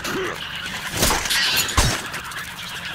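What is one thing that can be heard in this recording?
Heavy thuds strike as a creature is wrestled off.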